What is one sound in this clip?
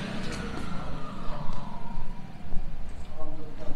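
A scooter engine buzzes in the distance and approaches.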